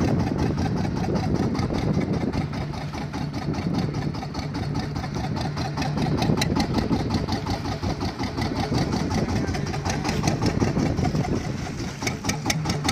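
A boat engine runs with a steady, fast chugging.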